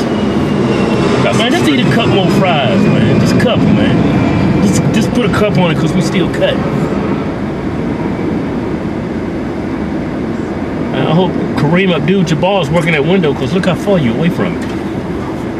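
A second man talks and laughs, close by.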